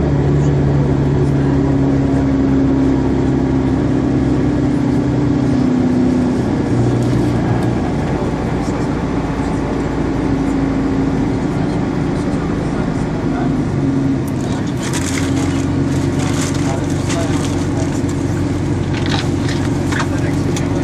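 A vehicle engine hums steadily from inside while driving slowly.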